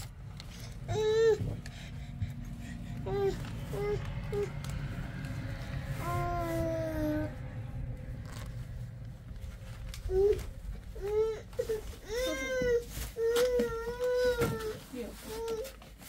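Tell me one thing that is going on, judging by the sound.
A young child calls out and babbles nearby.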